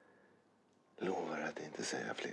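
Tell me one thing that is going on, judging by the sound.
A man speaks in a low, intense voice close by.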